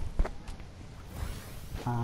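A bright magical chime sounds as a game character heals.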